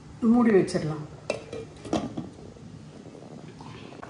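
A glass lid clanks onto a pot.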